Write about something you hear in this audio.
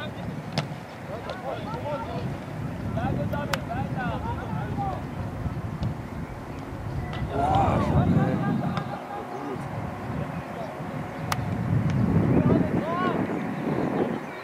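Teenage boys shout to each other across an open pitch outdoors.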